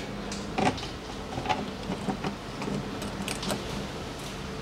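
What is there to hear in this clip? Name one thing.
Wires rustle and click as hands handle them.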